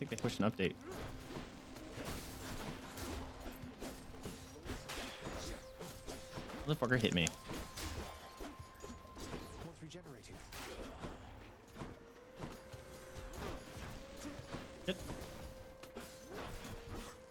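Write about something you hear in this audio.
Video game combat clashes and zaps ring out.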